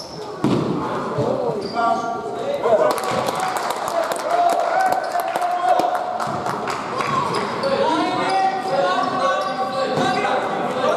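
A basketball bounces on the floor with echoing thuds.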